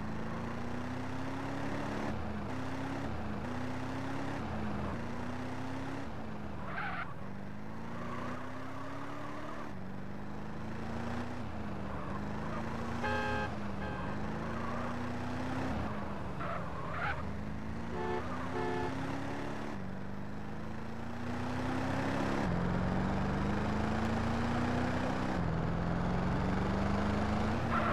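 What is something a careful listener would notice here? A car engine revs up and down as the car speeds along and shifts gears.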